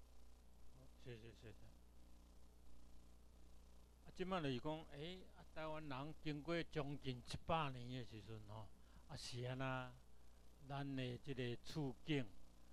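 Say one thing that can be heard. An older man speaks through a microphone over loudspeakers.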